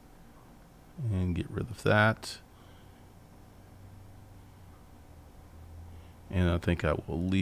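A man speaks calmly and closely into a microphone, with pauses.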